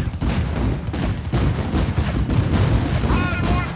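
Tank guns fire in rapid bursts with booming explosions.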